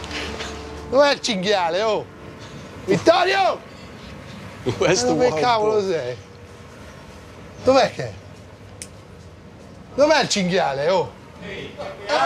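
A man asks questions in a raised voice close by.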